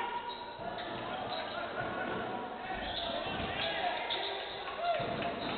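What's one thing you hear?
Sneakers squeak sharply on a hardwood court in an echoing hall.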